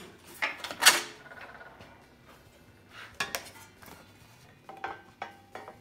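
A thin sheet of steel rattles and clanks as it is handled.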